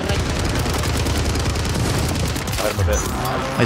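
Rapid gunfire rattles in a video game.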